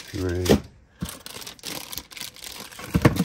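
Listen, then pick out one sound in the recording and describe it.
Paper crinkles in a hand.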